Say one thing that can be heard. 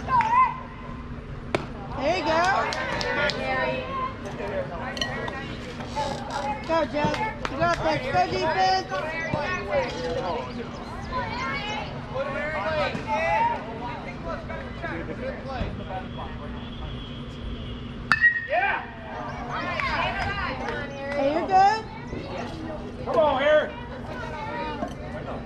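Young players shout and cheer nearby outdoors.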